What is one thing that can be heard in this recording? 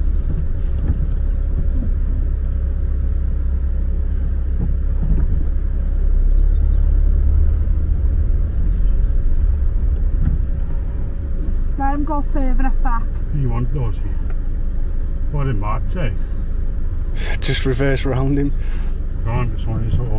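A car engine hums steadily with a low road rumble.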